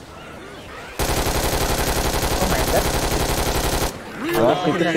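Automatic gunfire rattles in a rapid, steady burst.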